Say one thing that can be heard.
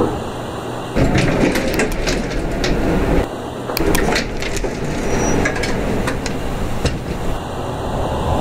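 Elevator doors slide open and then shut.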